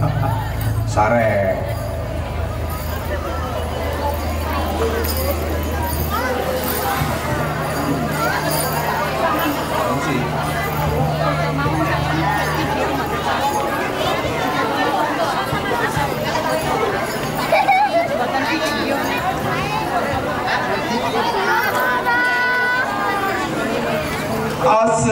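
Young boys chant and shout together.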